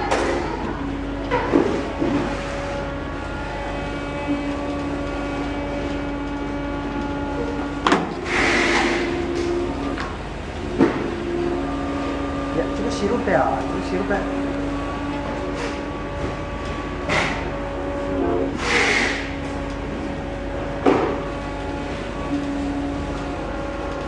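A machine hums and whirs steadily with rollers turning.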